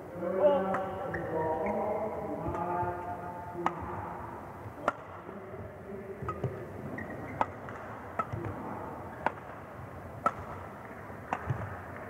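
Rackets strike a shuttlecock in a quick back-and-forth rally.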